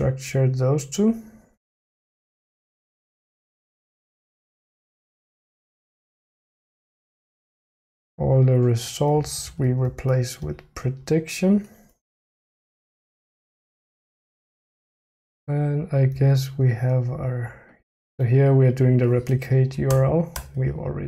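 A man talks with animation into a close microphone, pausing now and then.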